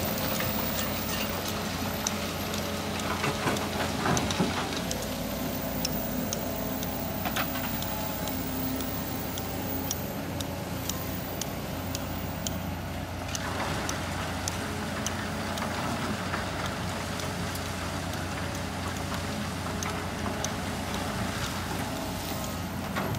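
Heavy diesel engines rumble steadily.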